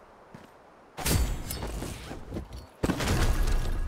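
A heavy case snaps open with a loud thud.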